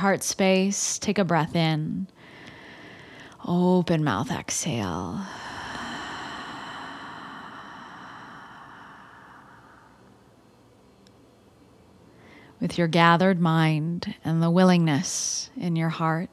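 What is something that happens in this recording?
A young woman speaks calmly and softly, close to a microphone.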